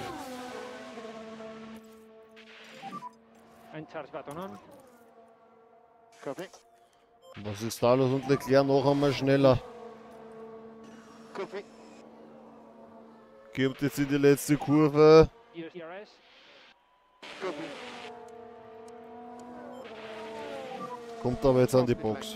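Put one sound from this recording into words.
Racing car engines whine as the cars speed along.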